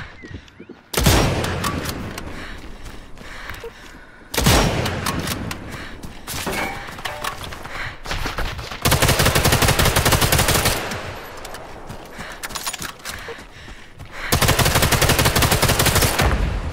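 A rifle fires a sharp, loud shot that echoes away.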